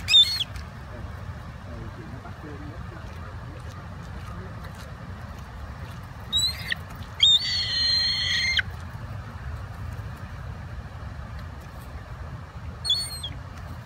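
Gulls cry out loudly close by.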